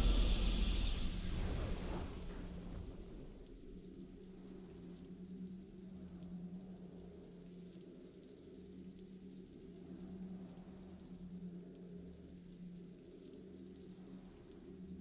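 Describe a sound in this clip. A triumphant game fanfare rings out and fades into soft, steady music.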